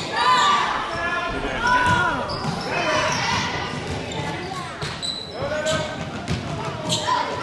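Spectators cheer and shout loudly in an echoing gym.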